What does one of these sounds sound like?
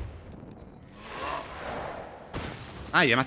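A magical ice spell whooshes and crackles.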